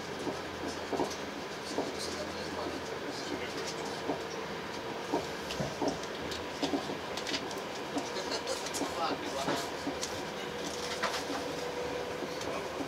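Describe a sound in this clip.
A train's wheels click and clatter over the rails.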